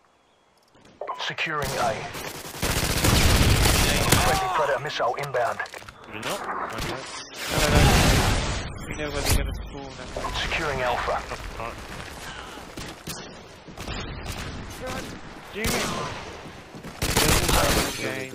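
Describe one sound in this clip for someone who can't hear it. Rapid gunfire bursts from a rifle.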